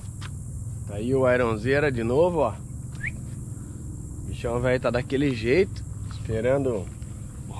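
A man speaks loudly with animation close by.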